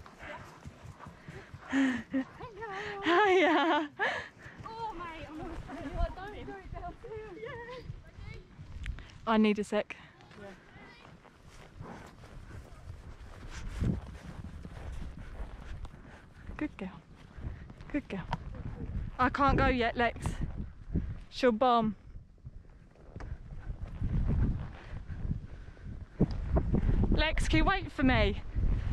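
Horse hooves thud softly on grass.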